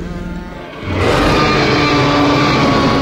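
A large dinosaur roars loudly.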